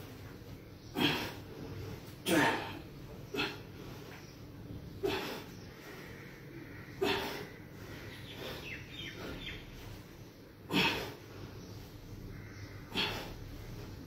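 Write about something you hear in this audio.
A man exhales sharply in short bursts close by.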